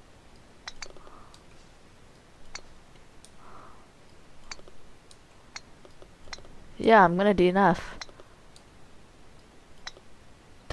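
A golf ball is tapped with a light click, again and again.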